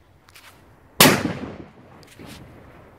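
A firecracker bangs loudly outdoors, its echo rolling away.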